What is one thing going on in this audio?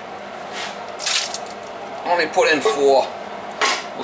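Chopped peppers drop from a can into a steel pot.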